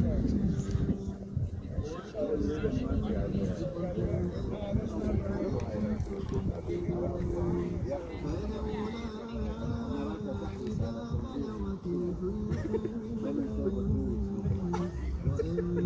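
Men talk calmly nearby.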